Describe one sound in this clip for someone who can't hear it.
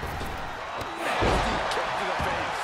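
A body crashes down hard onto the ring with a loud thud.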